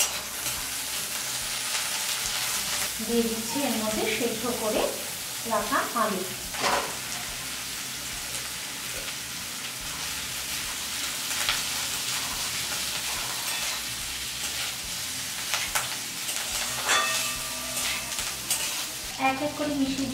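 A metal spatula scrapes and clatters against a pan.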